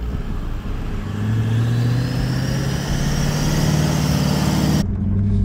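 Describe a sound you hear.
A four-wheel drive engine revs as it climbs through soft sand.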